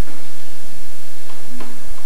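A marimba is struck with mallets.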